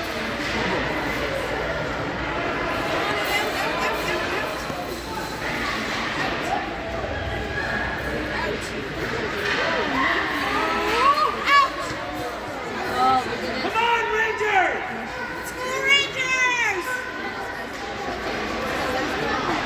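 Spectators chatter and shout in a large echoing rink.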